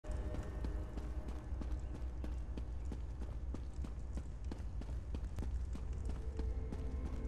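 Footsteps thud quickly on stone steps.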